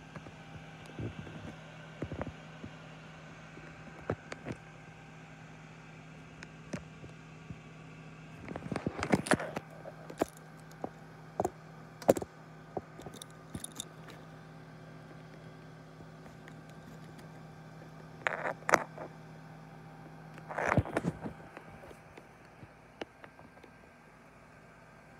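An oven's fan hums steadily.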